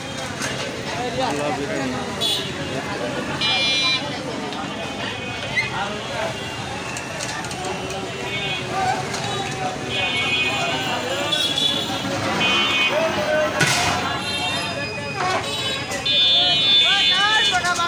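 A crowd of men talks nearby at once, outdoors.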